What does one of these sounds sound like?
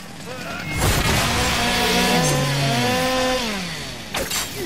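A creature lets out a loud, warbling screech that slowly falls in pitch.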